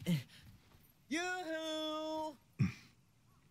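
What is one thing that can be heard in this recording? A young boy calls out a long, cheerful hello.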